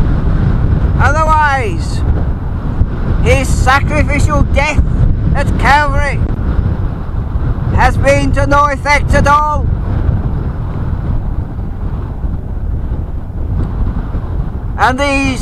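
Wind blows strongly and rumbles outdoors.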